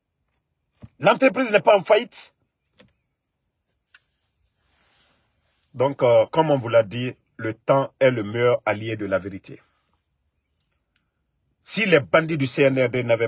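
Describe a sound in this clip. A man speaks close to a microphone, with animation and long pauses.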